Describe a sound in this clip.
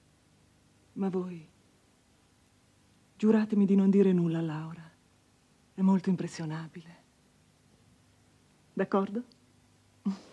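A woman speaks softly and with feeling, close by.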